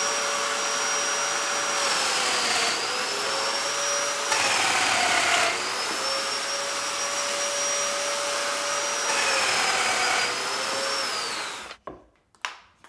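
A power planer whines loudly as it shaves wood.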